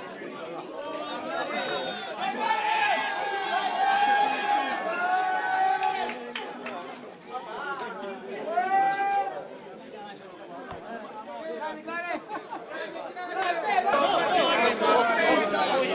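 A crowd chants loudly in unison.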